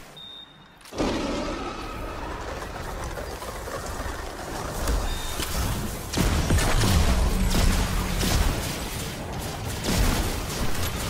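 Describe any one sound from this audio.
Energy weapons fire and blast loudly in rapid bursts.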